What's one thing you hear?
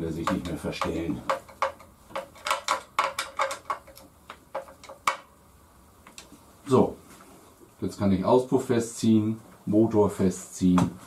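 An older man talks calmly, close by.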